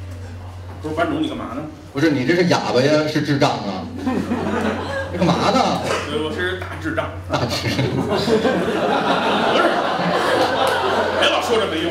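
Two men talk with animation through microphones and loudspeakers in a room that echoes.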